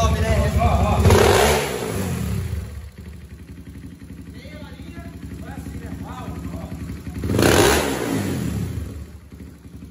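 A motorcycle engine revs loudly and drops back.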